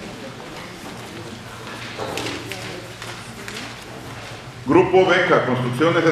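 Several men and women murmur and talk quietly in the background.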